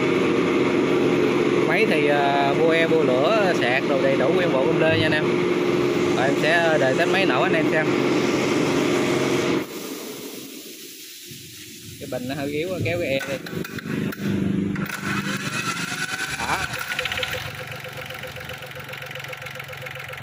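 A small diesel engine idles with a steady rattling hum.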